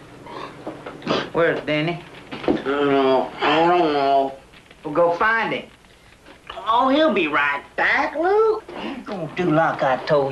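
A man speaks in a low, urgent voice close by.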